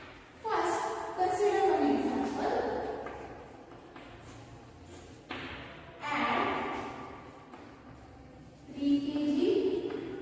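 A woman speaks calmly and clearly, like a teacher explaining, in a room with some echo.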